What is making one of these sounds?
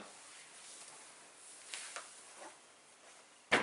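Clothing rustles as a man gets up close by.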